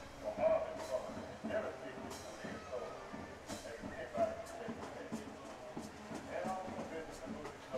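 Football players call out to each other across an open field outdoors.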